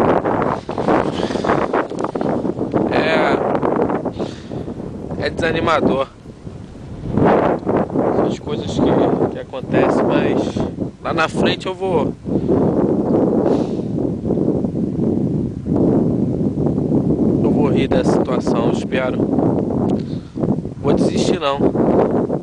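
Wind blusters against the microphone outdoors.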